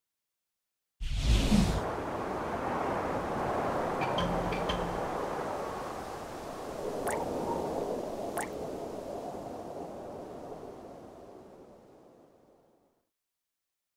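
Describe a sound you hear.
A gust of wind rushes loudly, then slowly fades away.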